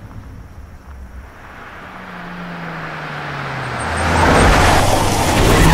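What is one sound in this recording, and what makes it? A car engine hums as a car drives along a road.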